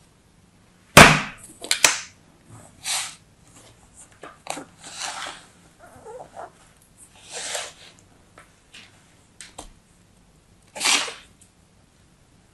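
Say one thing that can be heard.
Fingers crunch and squeeze soft sand.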